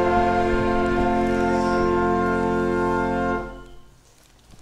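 A choir sings together and holds a final chord.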